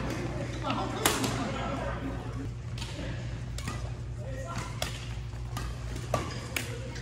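Badminton rackets hit a shuttlecock with sharp pops in a large echoing hall.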